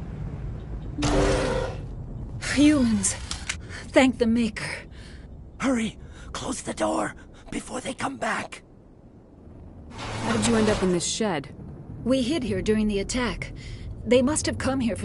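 A woman speaks in a worried voice.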